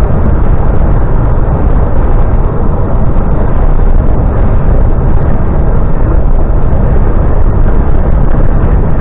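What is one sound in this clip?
Tyres roar steadily on the road.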